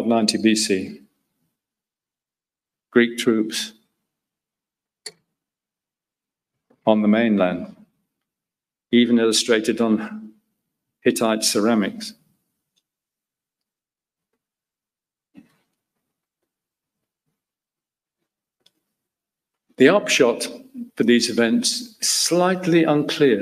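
A middle-aged man lectures calmly into a microphone, with long pauses.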